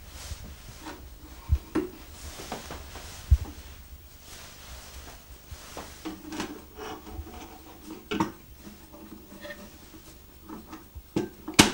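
Wooden parts knock and click against a box as a hand handles it.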